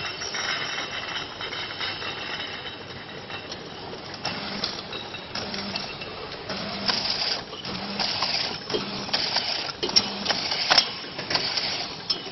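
A labelling machine whirs and hums steadily.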